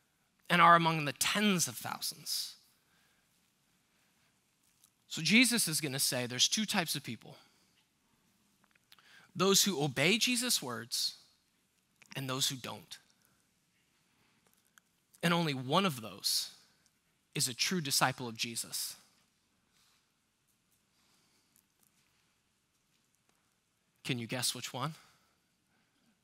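A man speaks with emphasis into a microphone, in bursts with long pauses.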